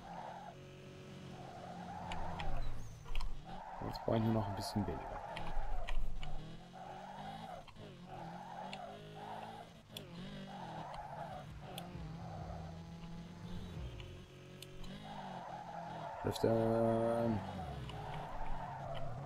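Tyres screech in long squeals as a car drifts.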